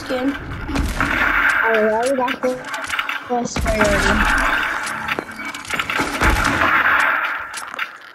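Assault rifle shots crack in bursts.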